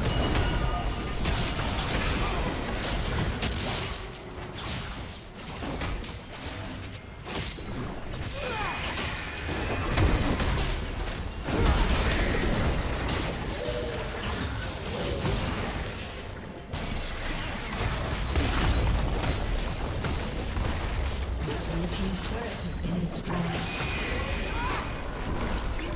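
Game blows thud and clash repeatedly.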